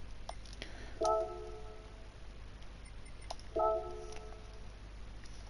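A short electronic menu chime sounds.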